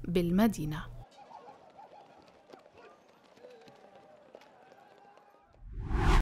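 A crowd of people runs and shouts in the street.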